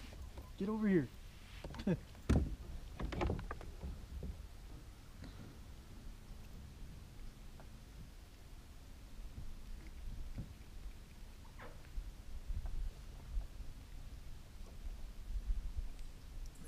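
Wind rumbles faintly outdoors.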